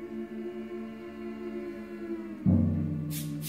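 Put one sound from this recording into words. A choir of young women sings a sustained closing chord.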